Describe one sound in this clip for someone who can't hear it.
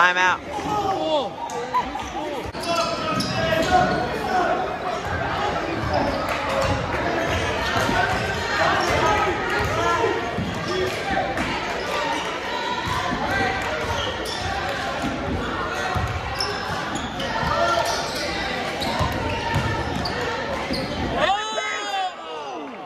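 A crowd of spectators chatters and cheers, echoing in a large gym.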